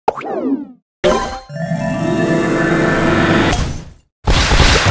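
A game power-up bursts with a long sparkling whoosh.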